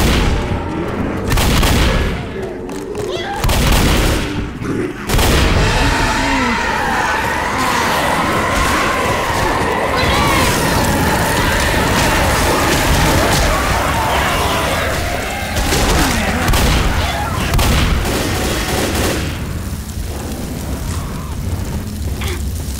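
Shotgun blasts go off in rapid bursts.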